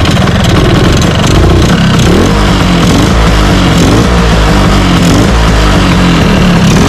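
A small scooter engine idles loudly and roughly close by.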